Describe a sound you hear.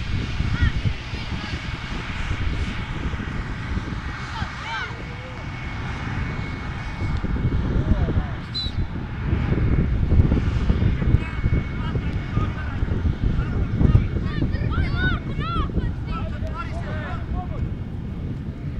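Young players shout to each other across a field.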